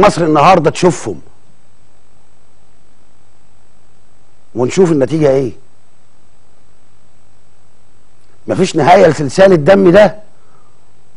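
A man speaks through a microphone in short, calm phrases.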